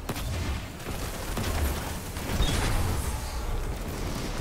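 An explosion booms and rumbles.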